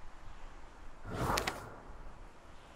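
A book page turns with a soft papery swish.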